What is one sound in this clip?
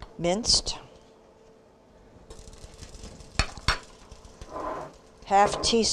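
A spoon scrapes and clinks in a glass jar.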